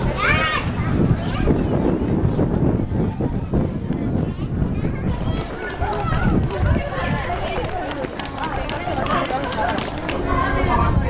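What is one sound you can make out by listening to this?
Footsteps shuffle on stone steps outdoors in wind.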